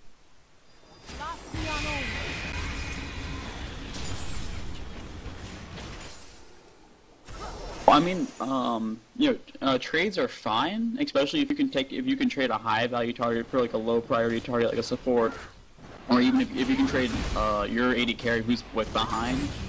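Magic blasts whoosh and crackle during a fight.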